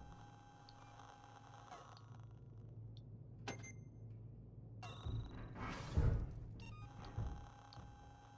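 Soft electronic menu blips sound.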